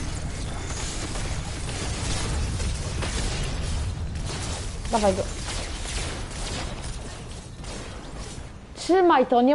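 Game combat effects whoosh and clatter loudly.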